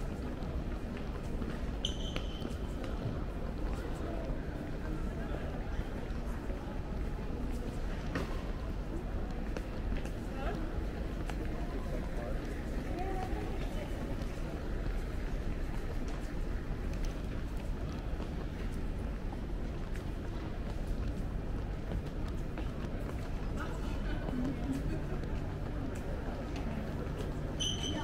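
A steady murmur of a crowd echoes through a large indoor hall.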